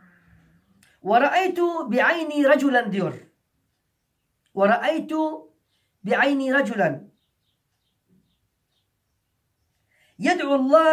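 A middle-aged man reads aloud calmly and close by, pausing between phrases.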